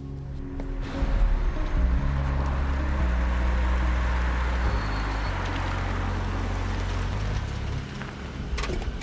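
A car engine hums as it pulls up.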